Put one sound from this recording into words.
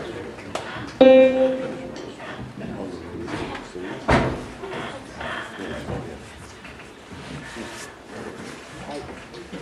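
A young woman speaks quietly through a microphone.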